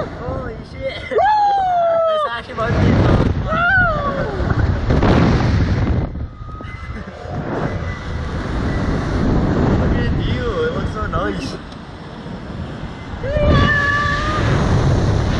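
A young man shouts and whoops loudly, close by.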